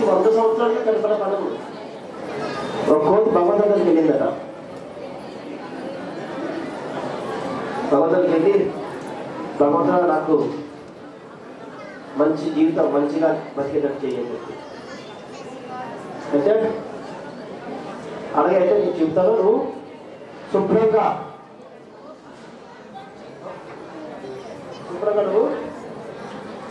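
A man speaks into a microphone over a loudspeaker, in bursts, with pauses, in a room with some echo.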